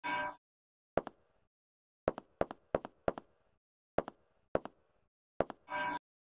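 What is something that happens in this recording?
Boots step on a hard tiled floor.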